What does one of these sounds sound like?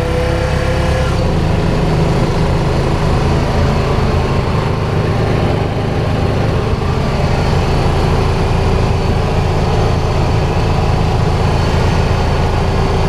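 Tyres roll over pavement.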